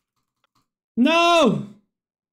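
A video game plays a short falling tone as a character dies.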